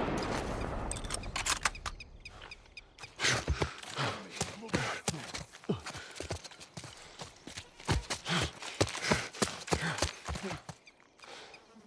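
Footsteps crunch softly on gravel.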